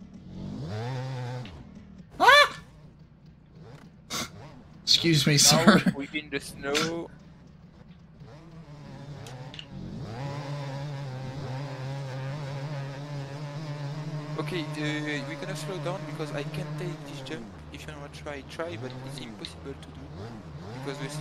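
A motorbike engine revs and drones, rising and falling in pitch.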